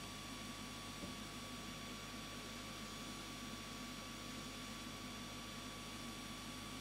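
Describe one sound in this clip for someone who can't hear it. A light plastic model knocks softly on a tabletop.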